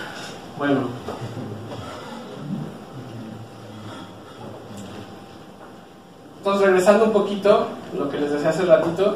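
A man lectures calmly.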